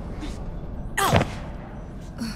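A body hits the ground with a heavy thud.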